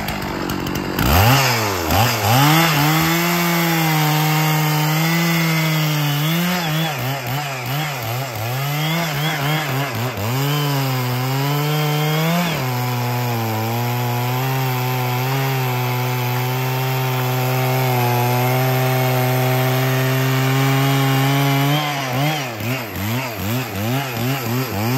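A chainsaw engine roars and revs up and down while cutting into a tree trunk.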